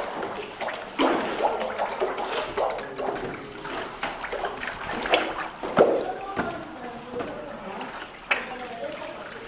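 Water sloshes and splashes in a vat.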